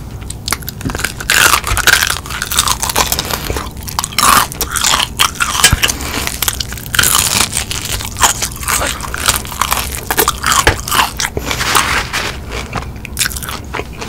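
A young woman chews wetly and smacks her lips.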